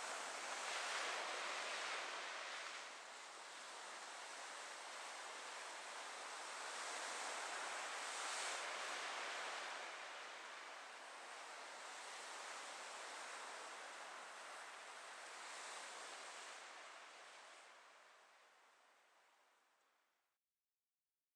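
Waves wash gently onto a shore, rising and falling in slow surges.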